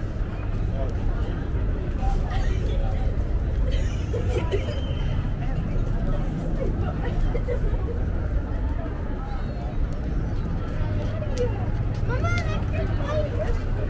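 Men and women chatter in passing nearby.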